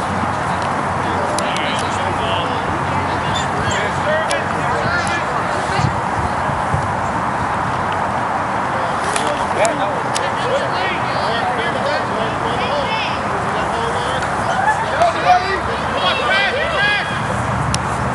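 Young players shout to each other in the distance outdoors.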